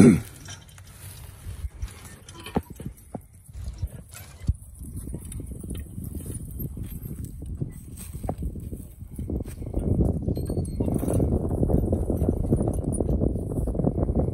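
Hooves thud softly on the ground.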